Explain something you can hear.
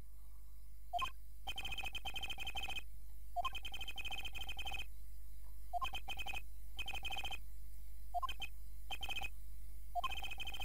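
Short electronic beeps chatter rapidly in bursts.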